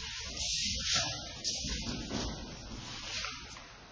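A body falls onto a padded mat with a dull thud.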